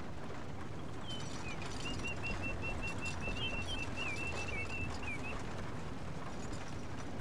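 A wooden wagon rattles and creaks as it rolls by.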